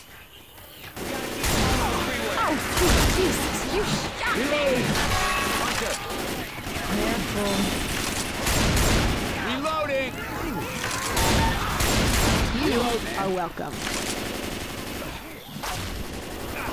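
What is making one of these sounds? Shotgun blasts go off again and again.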